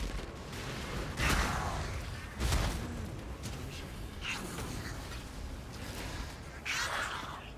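Spells burst and crackle in a game.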